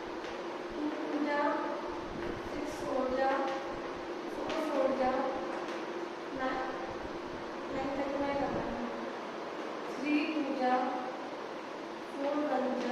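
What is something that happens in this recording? A woman speaks calmly nearby, reading out slowly.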